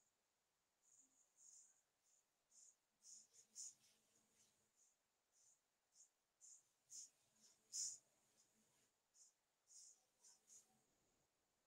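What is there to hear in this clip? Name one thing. Chalk taps and scratches faintly on a blackboard.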